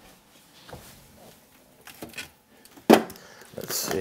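A fridge door thumps shut.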